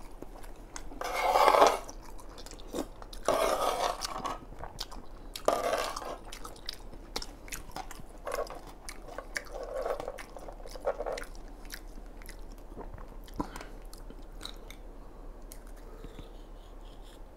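A metal spoon clinks and scrapes on a plate.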